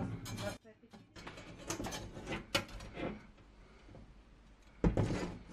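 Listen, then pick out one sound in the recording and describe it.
Thin metal slats clink and rattle.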